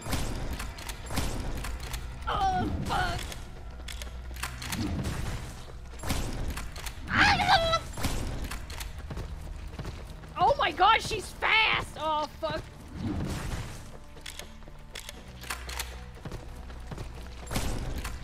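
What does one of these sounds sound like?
Gunshots crack rapidly in a video game.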